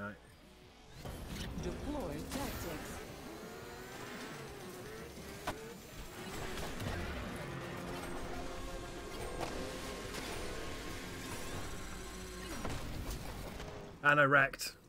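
A motorbike engine roars and revs at speed.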